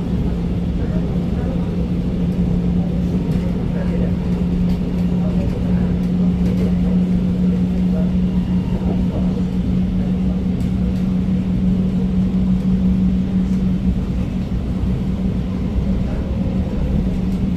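A train rumbles and hums steadily as it rolls along the track.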